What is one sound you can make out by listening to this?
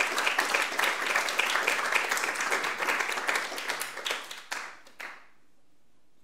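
An audience applauds in a large hall, then the clapping fades out.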